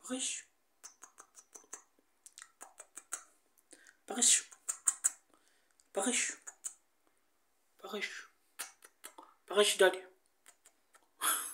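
A parrot chirps and squawks close by.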